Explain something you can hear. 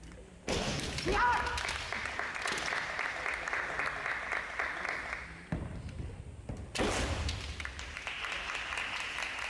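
Bare feet stamp on a wooden floor.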